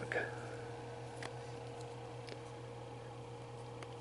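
A plastic figurine taps softly onto a hard surface.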